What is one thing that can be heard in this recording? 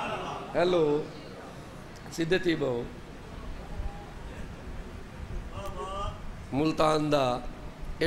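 A man speaks forcefully into a microphone, heard through a loudspeaker in a large echoing hall.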